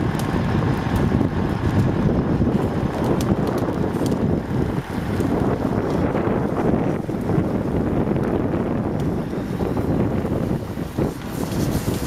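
A wooden fire crackles and pops.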